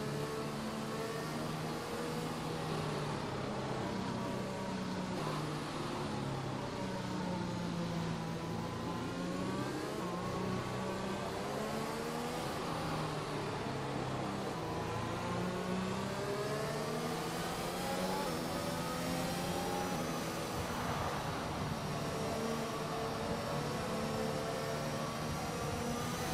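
A racing car engine drones and whines, rising and falling in pitch as it shifts gears.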